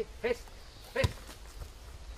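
An elephant kicks a ball with a thud.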